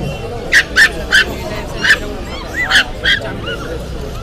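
Puppies yelp in short, sharp, high cries.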